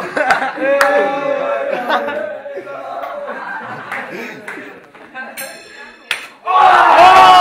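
Boys talk and shout loudly close by.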